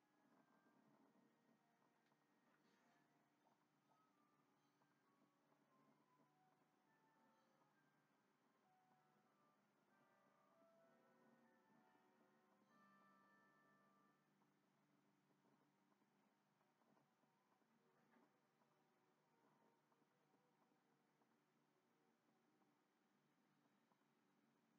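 Video game music plays faintly through a television speaker.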